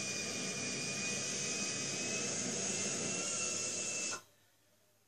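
A jet engine roars steadily through a television loudspeaker, then cuts off abruptly.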